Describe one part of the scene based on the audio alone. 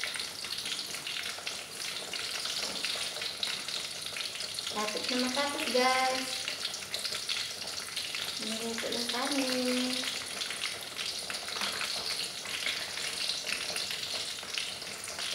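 Water bubbles gently in a pot.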